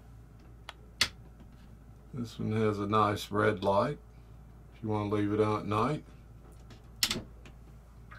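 A small switch clicks sharply.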